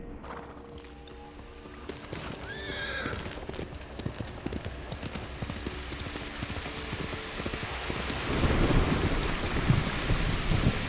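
Horse hooves pound quickly over the ground at a gallop.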